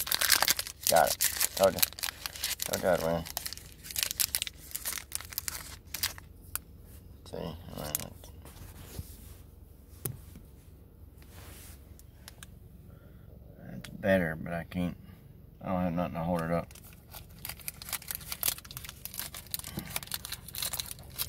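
A foil card pack crinkles and rustles in someone's hands.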